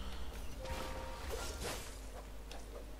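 A magic spell crackles and freezes water with an icy shimmer.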